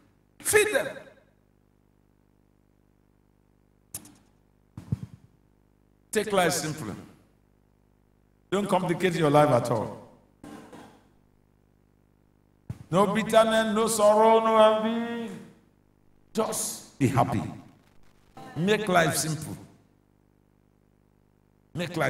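A man preaches with animation through a microphone in short bursts.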